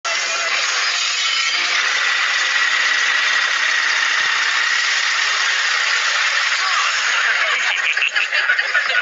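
A power tool whirs loudly and steadily.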